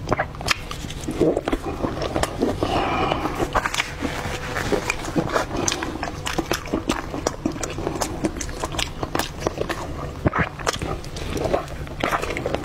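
Sticky food squelches and tears between hands.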